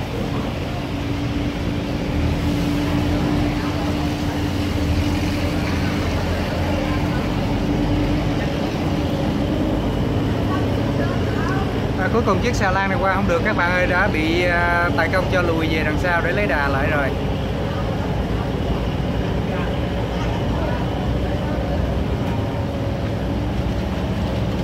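A barge's diesel engine rumbles low.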